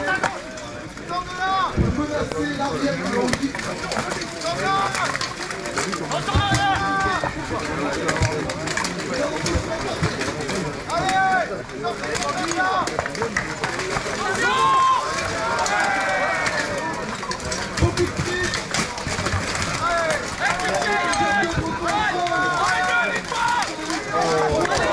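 A crowd of spectators chatters and shouts outdoors.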